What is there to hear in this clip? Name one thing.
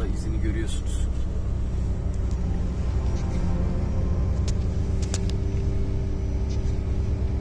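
Snow crunches and scrapes under the car.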